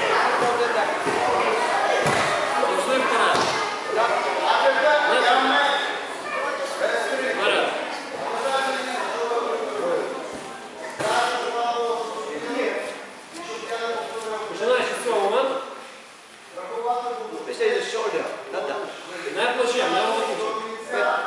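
A man speaks steadily through a microphone and loudspeaker in an echoing hall.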